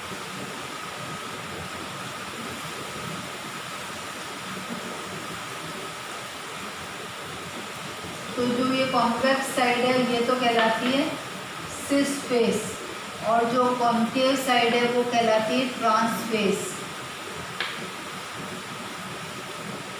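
Chalk scrapes and taps on a blackboard.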